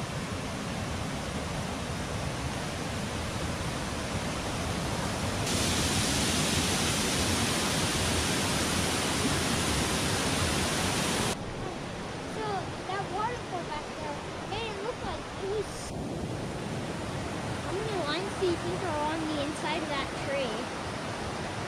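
A creek rushes over rocks.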